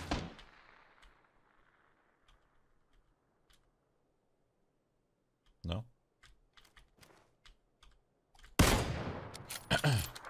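A rifle shot cracks and echoes.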